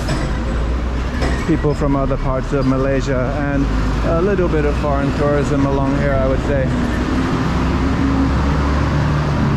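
A bus engine rumbles nearby as the bus passes.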